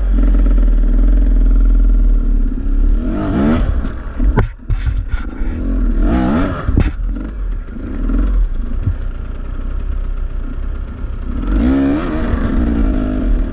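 A dirt bike engine idles and revs up close.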